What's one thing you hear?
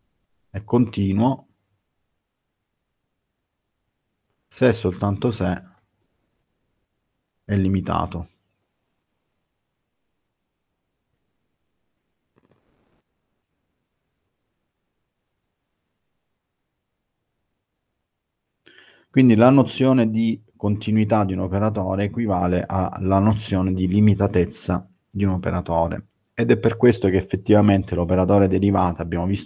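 A man speaks calmly through a headset microphone on an online call, with pauses.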